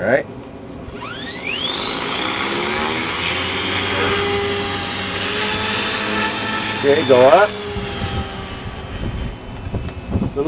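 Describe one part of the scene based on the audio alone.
A model helicopter's rotor spins up to a rising whine and then hums steadily.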